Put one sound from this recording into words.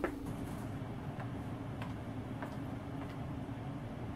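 A metal locker door rattles and clicks.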